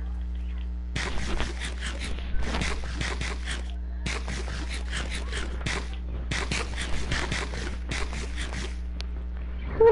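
A game character munches food in quick crunchy bites.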